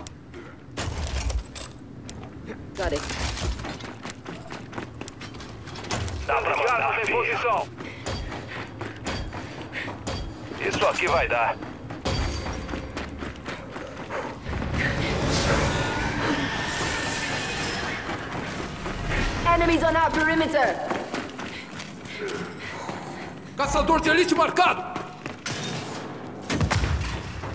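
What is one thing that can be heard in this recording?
Heavy armoured footsteps clank and thud on metal floors.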